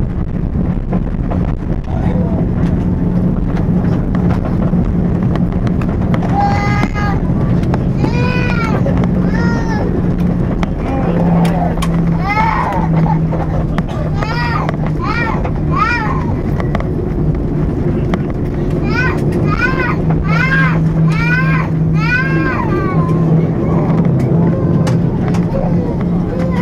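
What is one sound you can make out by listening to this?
An aircraft rumbles as it rolls along the ground.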